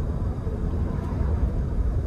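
A truck passes by in the other direction.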